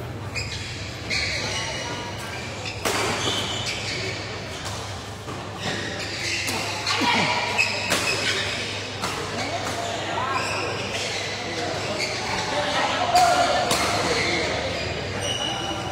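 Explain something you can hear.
Shuttlecocks are struck sharply with rackets, back and forth.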